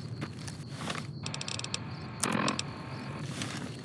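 Short electronic clicks tick as a menu is paged through.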